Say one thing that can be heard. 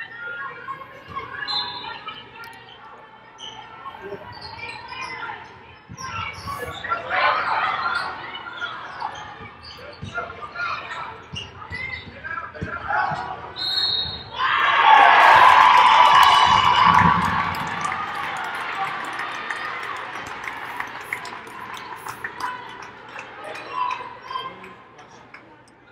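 Basketball shoes squeak on a hardwood court.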